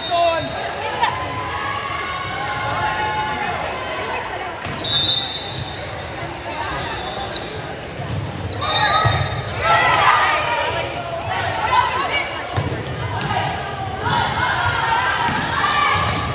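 A volleyball smacks off hands and arms.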